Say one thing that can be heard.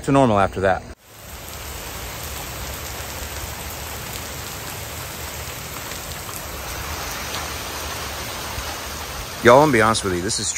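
Steady rain pours down outdoors.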